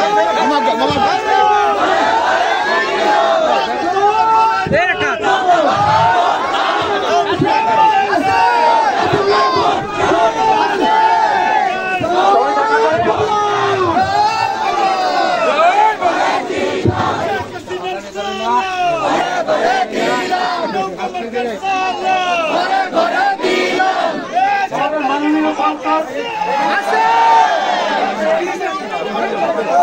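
A large crowd of men chants and talks loudly outdoors.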